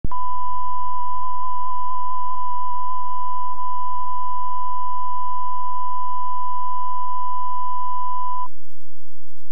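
A steady, high-pitched test tone beeps continuously, then cuts off abruptly.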